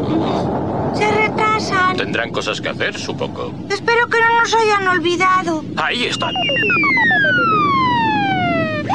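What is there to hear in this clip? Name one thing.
A spaceship's light beam warbles with electronic tones that then glide downward.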